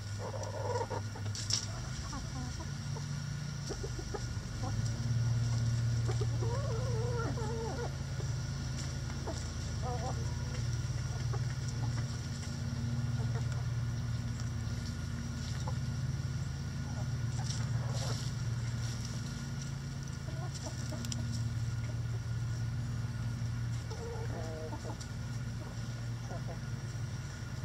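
Hens cluck softly nearby.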